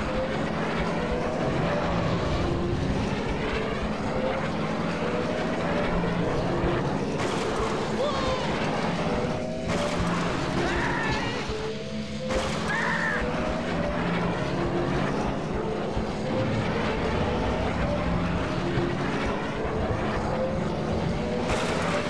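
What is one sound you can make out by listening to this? A racing pod's engines roar steadily at high speed.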